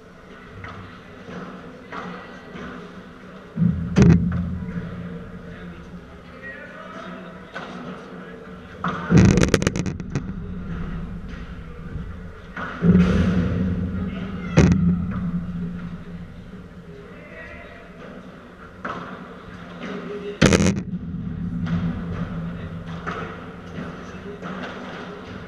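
Paddle rackets hit a ball back and forth in a large echoing hall.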